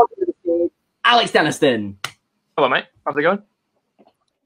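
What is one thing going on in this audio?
A young man laughs loudly over an online call.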